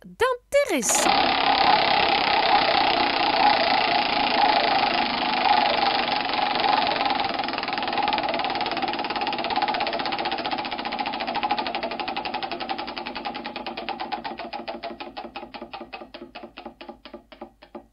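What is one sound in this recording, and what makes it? A spinning wheel clicks rapidly, then gradually slows its ticking.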